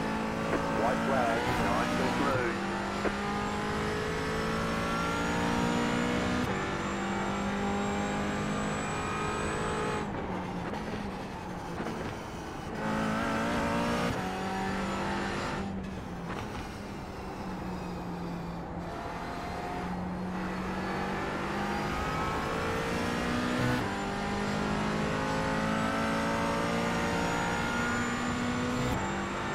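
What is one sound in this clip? A racing car engine roars loudly, shifting gears and revving up and down.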